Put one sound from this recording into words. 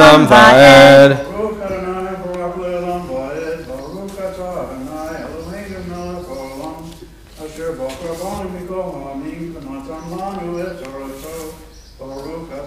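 A man chants steadily through a microphone.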